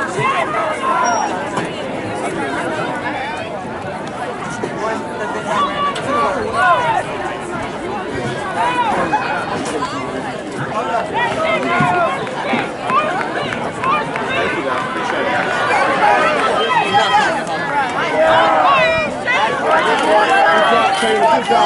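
Spectators shout and cheer encouragement outdoors.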